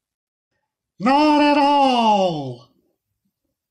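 A young woman shouts loudly with cupped hands.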